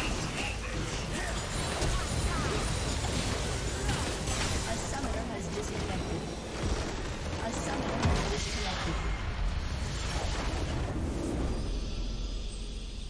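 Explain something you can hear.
Video game spell and combat effects crackle and burst.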